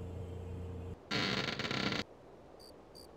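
A metal door slides open.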